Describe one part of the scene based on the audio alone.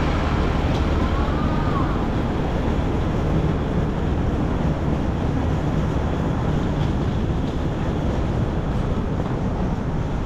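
Suitcase wheels roll over a hard floor.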